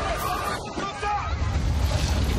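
A crowd of people shouts and screams in panic.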